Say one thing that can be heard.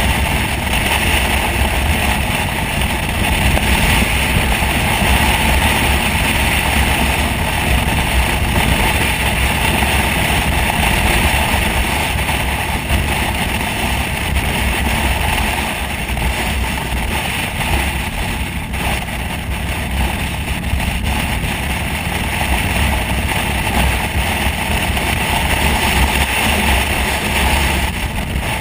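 Wind roars loudly over a motorcycle rider's helmet.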